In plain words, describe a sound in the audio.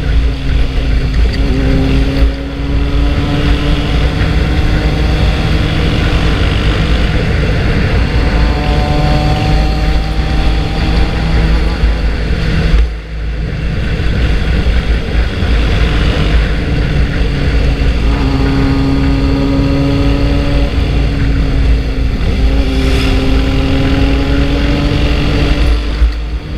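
A motorcycle engine rumbles steadily close by, rising and falling in pitch as it speeds up and slows.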